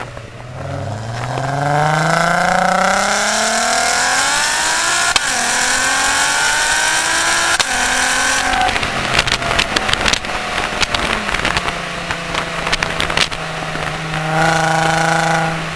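A car engine roars loudly, revving hard up through the gears.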